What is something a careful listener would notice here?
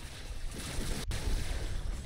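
Sword slashes whoosh in a spinning strike.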